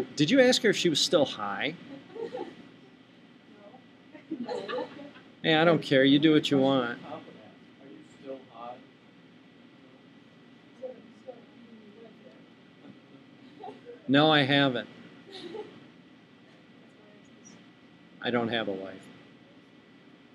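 A young woman speaks calmly and closely into a microphone, in short bursts with pauses.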